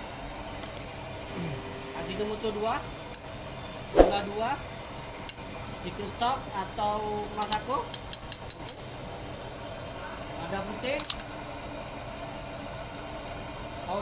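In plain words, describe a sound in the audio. A metal ladle clinks against ceramic pots.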